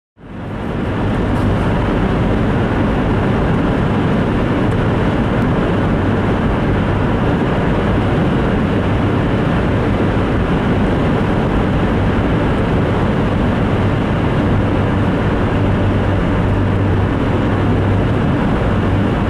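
A car's engine hums steadily from inside the car.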